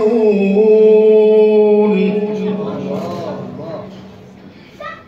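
A man chants a long sustained note into a microphone, echoing in a room.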